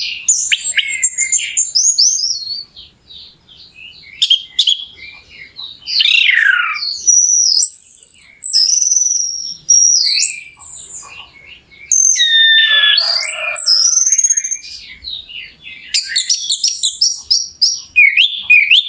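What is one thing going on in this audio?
A songbird sings loud, varied whistling phrases and trills close by.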